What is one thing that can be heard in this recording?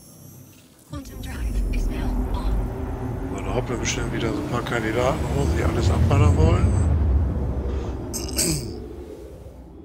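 A spaceship engine roars and hums.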